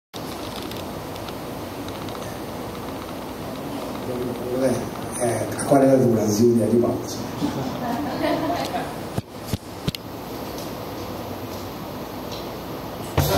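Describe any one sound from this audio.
A double bass is plucked softly.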